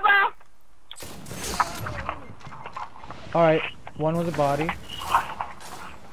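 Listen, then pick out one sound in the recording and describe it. Gunshots crack out in short bursts.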